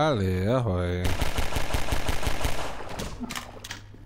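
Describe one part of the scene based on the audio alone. Pistol shots ring out in quick succession.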